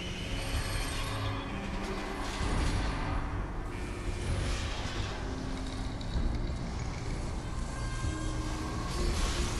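Sparks crackle and hiss around a robot.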